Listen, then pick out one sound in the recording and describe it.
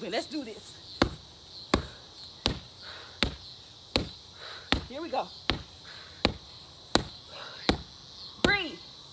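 Gloved punches thud steadily against a heavy punching bag.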